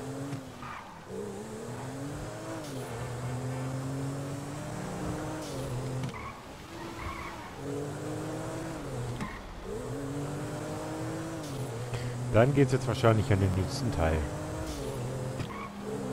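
A car engine revs up and shifts through gears again and again.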